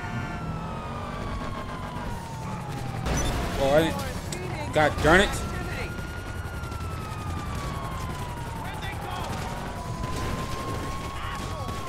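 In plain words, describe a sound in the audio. A police siren wails with a rising and falling pitch.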